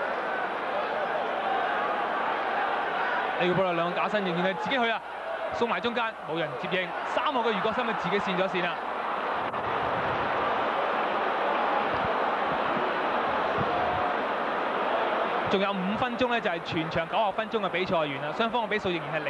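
A stadium crowd murmurs and roars steadily in the distance.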